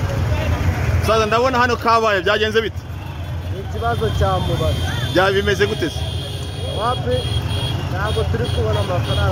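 A man speaks calmly close to a microphone outdoors.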